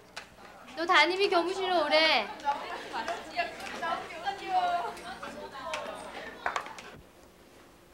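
A young woman speaks loudly and clearly nearby.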